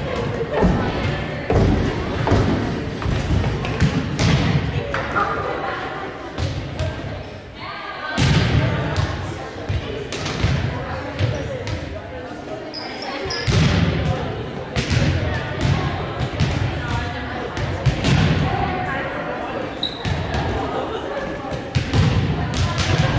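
A volleyball is struck and thuds repeatedly, echoing in a large gym.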